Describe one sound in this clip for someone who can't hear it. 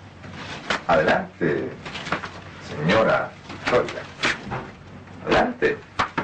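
A woman speaks anxiously.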